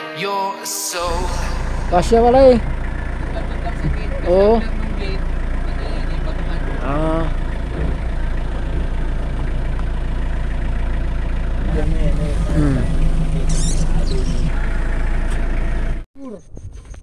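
A vehicle drives over grass, its engine humming low from inside the cab.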